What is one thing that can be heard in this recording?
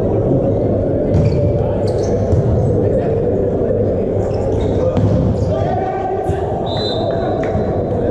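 A volleyball is struck hard by hands during a rally in a large echoing hall.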